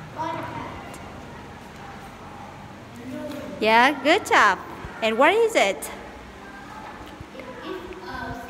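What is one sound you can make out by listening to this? A young boy speaks clearly and loudly close by.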